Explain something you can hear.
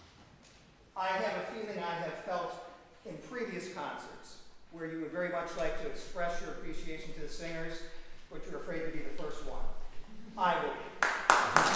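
A man speaks calmly to a gathering in an echoing hall.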